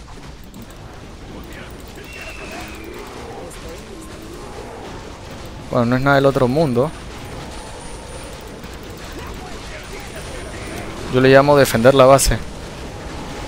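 Game battle sounds of swords and spells clash quietly in the background.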